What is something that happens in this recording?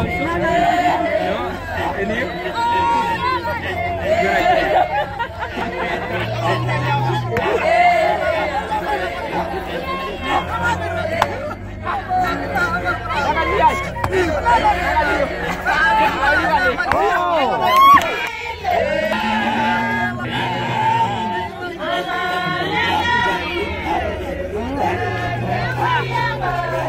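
A group of men chant and sing together in deep voices outdoors.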